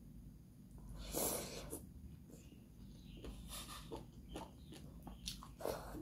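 A woman slurps noodles close to a microphone.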